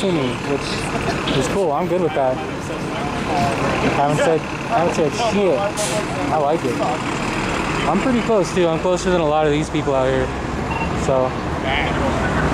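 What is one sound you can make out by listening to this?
A man talks casually, close by, outdoors on a busy street.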